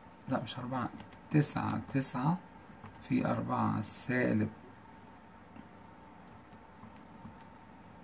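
Calculator keys click under a finger.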